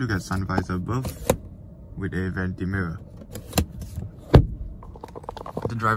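A plastic cover slides and clicks shut.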